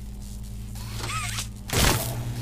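An electric charge crackles and zaps.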